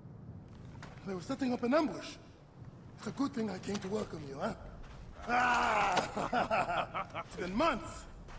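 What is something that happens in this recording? A young man speaks with animation and close.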